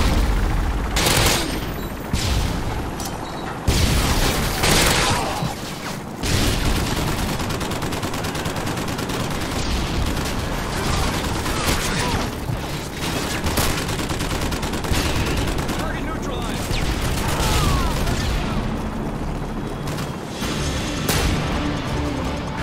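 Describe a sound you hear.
Gunfire cracks in rapid bursts.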